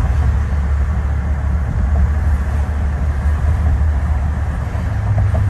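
A passing car's tyres whoosh close by on the road.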